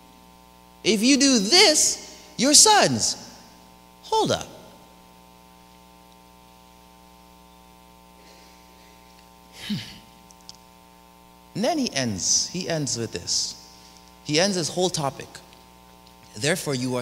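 A man speaks with animation through a microphone, in bursts with long pauses.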